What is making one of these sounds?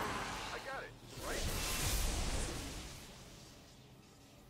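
A rushing energy whoosh swells and then fades away.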